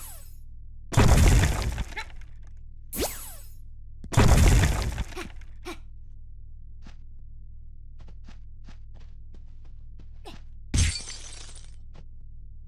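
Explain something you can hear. An electric bolt crackles and zaps in loud bursts.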